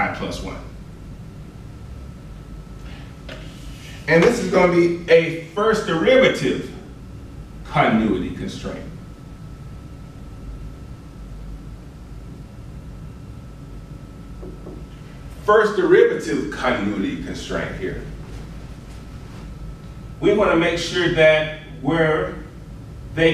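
A man speaks calmly, pausing between phrases.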